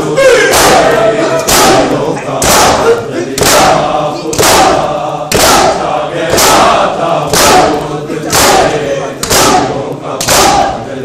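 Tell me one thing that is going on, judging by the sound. A crowd of men chant together loudly.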